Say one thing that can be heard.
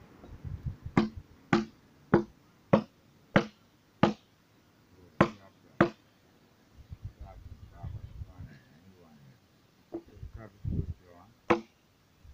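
A hand tool chops into a log.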